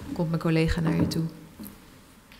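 A young woman speaks into a microphone in a hall with some echo.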